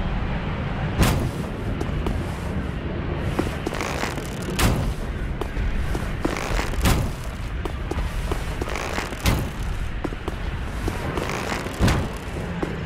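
Heavy blows thud and clang in a fight.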